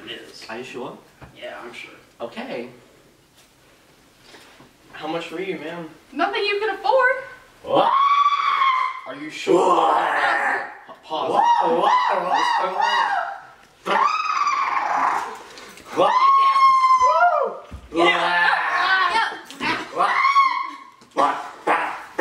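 Teenagers talk and laugh together.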